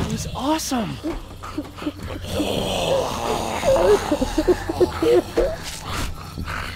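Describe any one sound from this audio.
A zombie growls and snarls close by.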